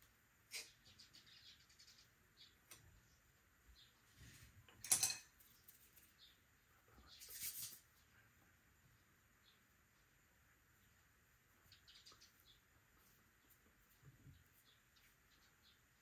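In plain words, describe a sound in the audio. A wooden tool scrapes and taps on clay.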